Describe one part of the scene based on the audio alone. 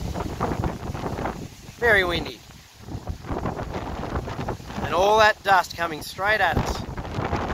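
Wind blows across open ground and buffets close by.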